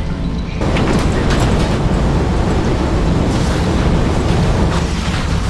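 Flamethrowers roar and crackle.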